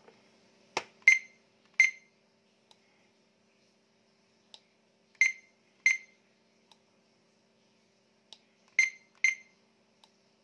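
A radio set beeps in short pairs.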